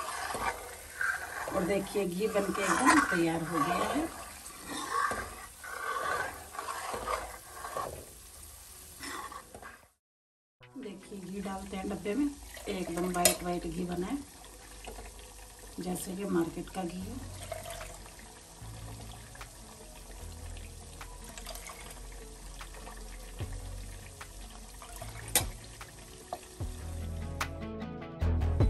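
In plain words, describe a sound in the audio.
A metal ladle scrapes and clinks against a metal pan.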